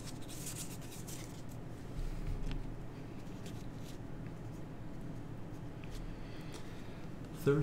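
Playing cards slide and tap on a tabletop.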